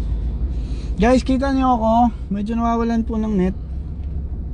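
A young man sings a few drawn-out notes close by.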